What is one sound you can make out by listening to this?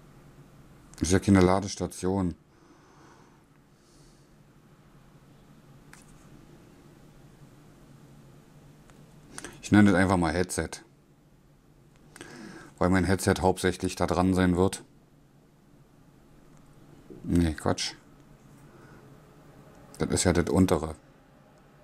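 A man speaks in short bursts close by.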